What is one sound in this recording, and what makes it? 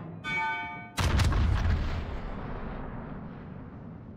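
Heavy ship guns fire with loud booming blasts that rumble away.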